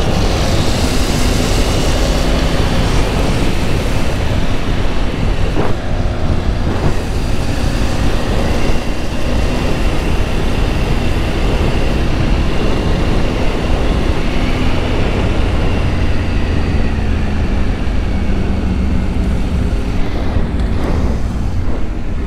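A motorcycle engine hums steadily while riding at speed.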